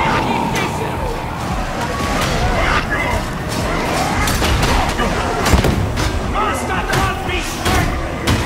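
A crowd of creatures snarls and roars.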